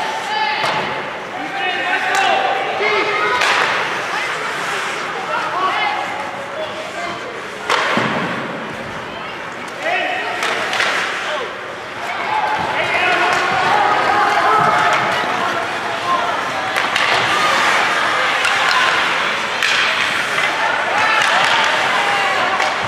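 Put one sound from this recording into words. Skates scrape across the ice.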